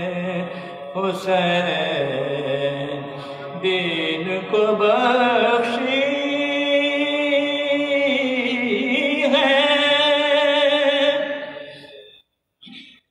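A group of men chant together in unison into a microphone, slowly and mournfully.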